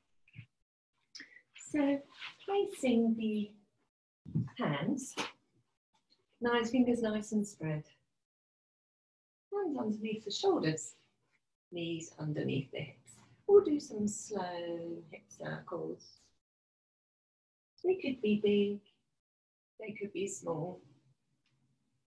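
A woman speaks calmly, giving instructions, close to a microphone.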